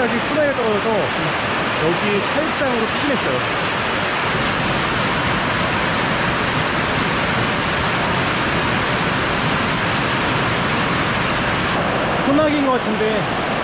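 A young man talks cheerfully and close by.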